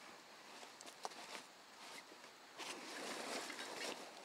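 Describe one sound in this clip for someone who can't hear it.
Canvas fabric rustles as a backpack is rummaged through.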